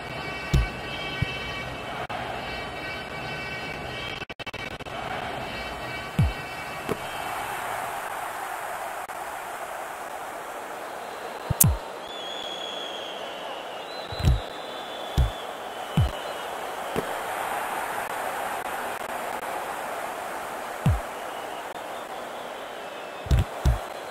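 A ball is kicked with dull thumps, again and again.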